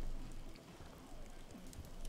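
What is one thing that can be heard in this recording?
A young woman gulps down a drink.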